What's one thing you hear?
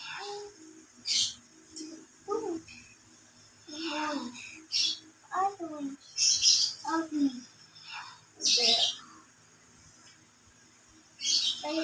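A paintbrush swishes softly across paper.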